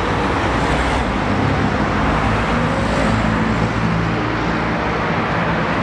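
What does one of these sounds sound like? Traffic passes by on a nearby street.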